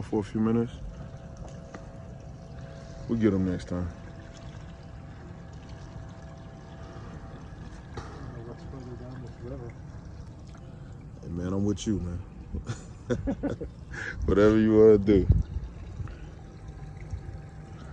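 A boat motor hums low and steady.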